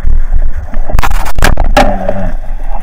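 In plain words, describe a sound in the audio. A speargun fires underwater with a sharp snap.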